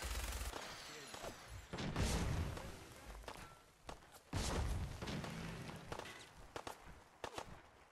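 A heavy suit of armour clanks with each footstep.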